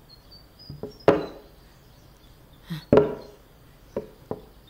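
A wooden cabinet door knocks open.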